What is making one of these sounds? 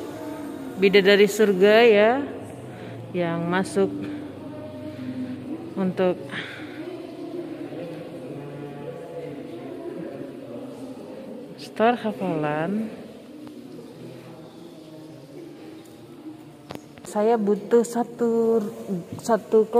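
Young girls chant a melodic recitation in short phrases.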